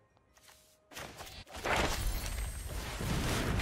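A bright magical zap rings out.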